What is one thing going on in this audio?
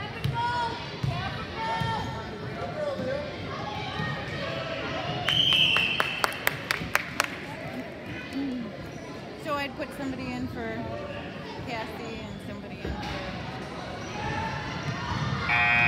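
A crowd of people cheer and call out in a large echoing gym.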